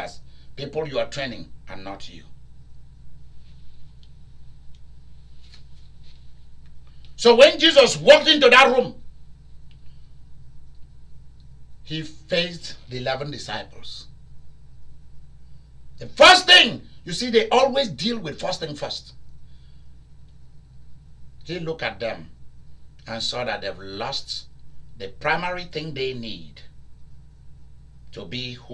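A man speaks with animation, pausing between phrases.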